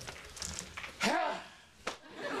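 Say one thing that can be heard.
A man shouts loudly with excitement.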